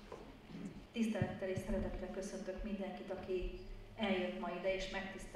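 A children's choir starts to sing.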